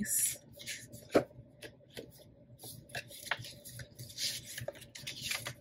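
Paper sheets rustle and shuffle close by.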